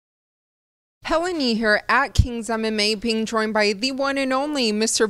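A young woman speaks clearly into a microphone, presenting with animation.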